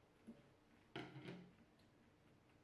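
A spatula scrapes against a glass bowl.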